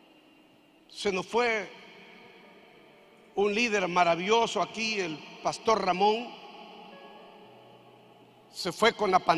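A middle-aged man speaks with animation through a microphone, with pauses, in a large echoing hall.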